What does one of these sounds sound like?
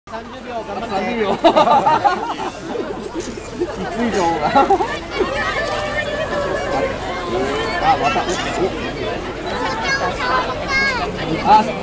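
A crowd of people chatters and talks all around.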